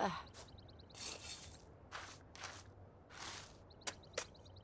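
A small trowel scrapes and digs into soil in short bursts.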